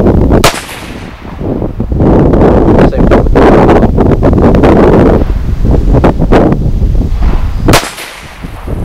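A rifle fires with a loud, sharp crack outdoors.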